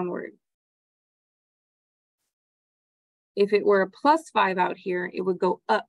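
A young woman speaks calmly into a microphone, explaining.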